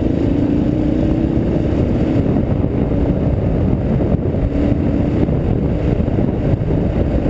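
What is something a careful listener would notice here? Wind buffets loudly against the rider.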